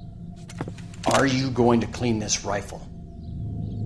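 A man asks questions in a stern, gruff voice.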